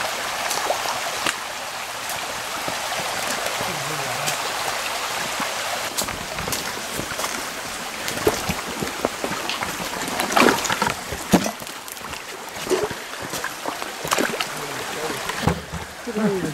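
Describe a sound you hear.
A shallow creek babbles and trickles over stones.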